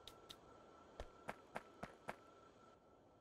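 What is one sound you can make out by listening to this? Short sharp clicks tap in quick succession.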